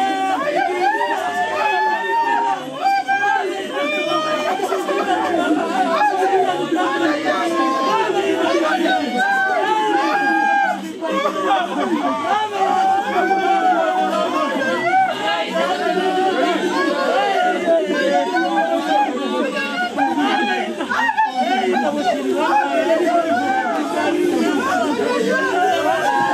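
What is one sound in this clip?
A group of women wail and sing together nearby.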